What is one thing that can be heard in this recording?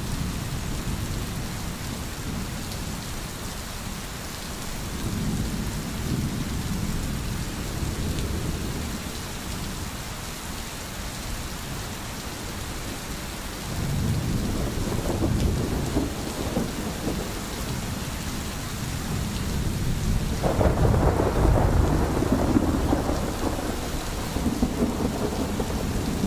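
A stream gurgles over stones.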